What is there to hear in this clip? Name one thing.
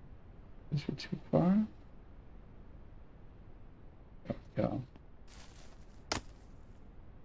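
Heavy logs thud and knock against a wooden cart bed.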